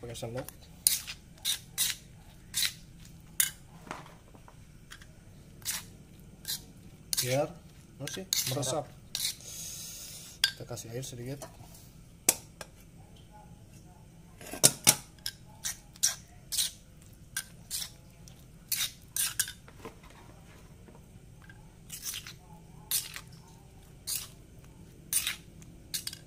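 A metal spoon clinks and scrapes against a stone bowl.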